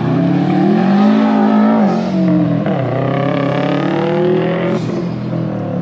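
A car engine roars loudly, revving up and down as it speeds past.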